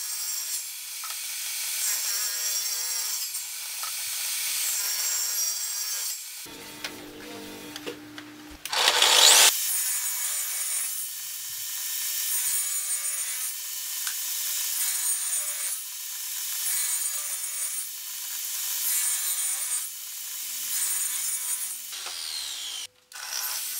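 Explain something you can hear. A table saw motor whines steadily.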